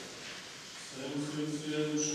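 Men chant together in a room with some echo.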